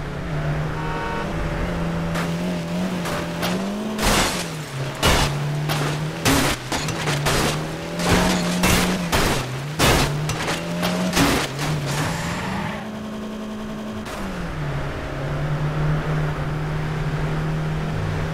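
A sports car engine roars at speed.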